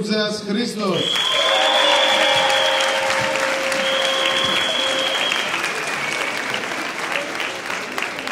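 A large group of young people sings together.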